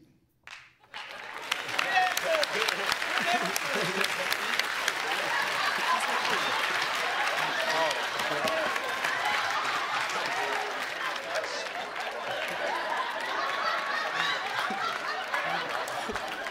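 A studio audience laughs and cheers loudly.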